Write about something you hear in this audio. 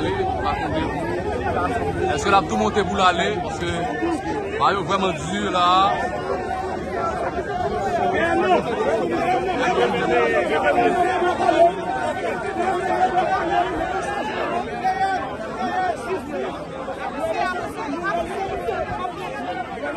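A large crowd shouts and chants outdoors.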